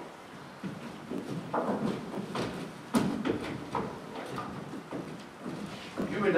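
Footsteps thud on a wooden stage floor.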